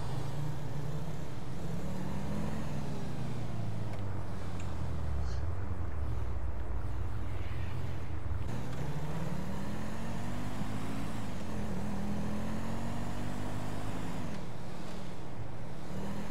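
Tyres hiss on asphalt.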